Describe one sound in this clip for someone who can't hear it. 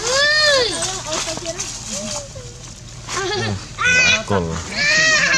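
A baby monkey squeals and cries loudly, close by.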